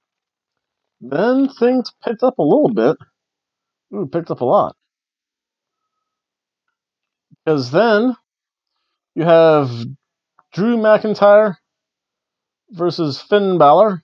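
A man speaks close to the microphone in short phrases with pauses.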